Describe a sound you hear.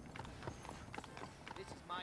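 A horse's hooves clop on the street.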